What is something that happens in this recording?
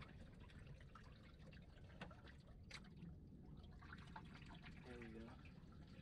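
A man handles gear on a boat deck with small clicks and knocks.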